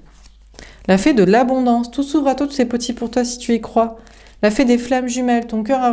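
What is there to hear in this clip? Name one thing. Playing cards are laid softly down onto a cloth.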